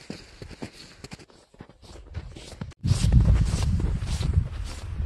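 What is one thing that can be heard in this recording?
Boots crunch steadily on packed snow close by.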